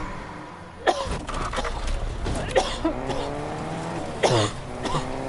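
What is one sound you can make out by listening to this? A car engine hums as it drives off.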